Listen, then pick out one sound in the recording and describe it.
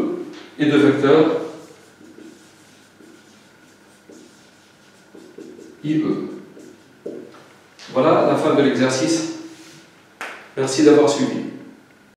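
An elderly man speaks calmly into a close microphone, pausing between phrases.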